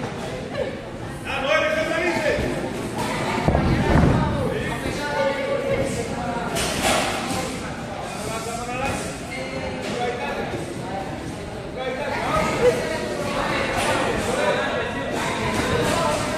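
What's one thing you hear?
Several young men talk and call out loudly in an echoing hall.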